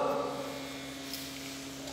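A trowel scrapes wet mortar.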